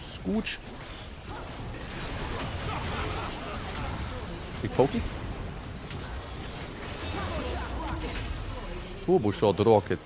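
Video game spells whoosh and crackle during a fight.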